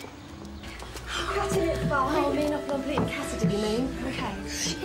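Young girls chatter excitedly close by.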